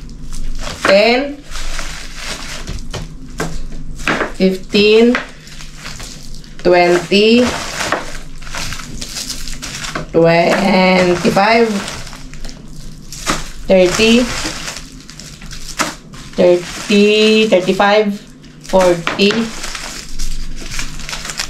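Plastic wrappers rustle and crinkle as they are handled.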